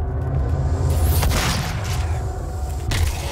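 A fireball explodes with a roaring burst.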